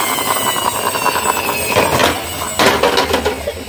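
A plastic toy car rattles as it rolls over a stone ledge.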